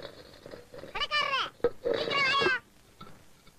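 A young child speaks in a high voice.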